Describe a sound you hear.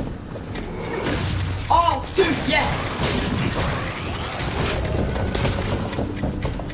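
Fiery blasts explode with a whoosh.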